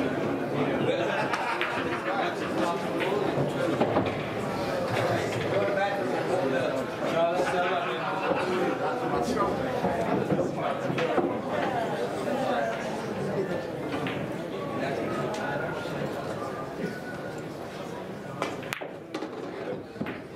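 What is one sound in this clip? A cue stick strikes a ball.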